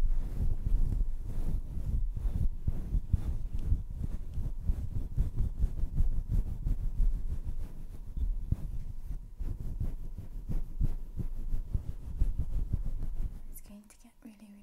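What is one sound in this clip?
Objects rub and scratch over a fluffy microphone cover, close and loud.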